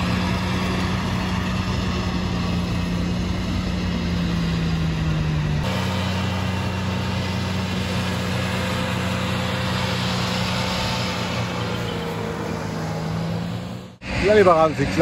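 A mower engine hums steadily nearby.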